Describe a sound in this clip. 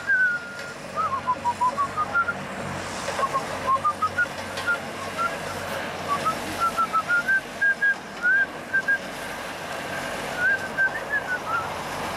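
Traffic hums steadily along a nearby road outdoors.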